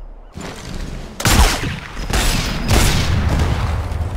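A suppressed rifle fires a single muffled shot.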